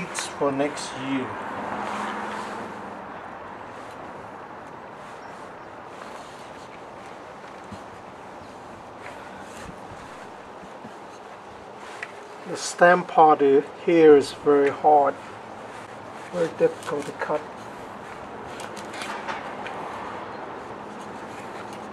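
A knife cuts into a melon rind.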